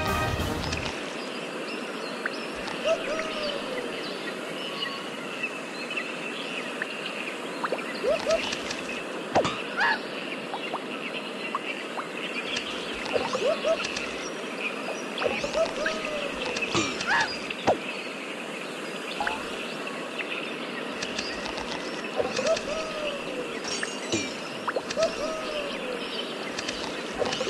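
Coins chime as bananas are collected.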